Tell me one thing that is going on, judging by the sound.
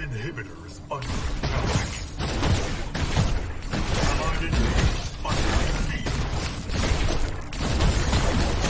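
Video game gunfire and blasts crackle in a battle.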